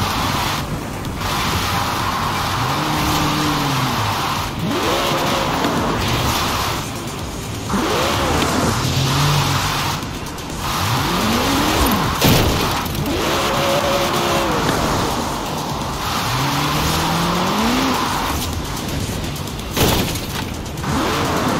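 Tyres screech as a car drifts and spins.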